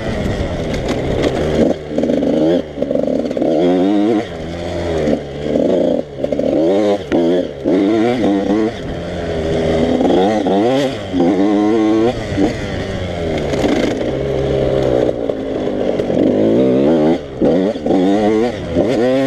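A dirt bike engine revs hard and drops again and again, close by.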